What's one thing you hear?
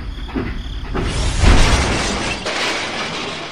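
A toy train tips over and crashes into sand.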